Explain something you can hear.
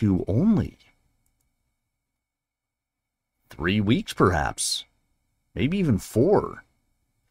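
A man reads aloud calmly and close to a microphone.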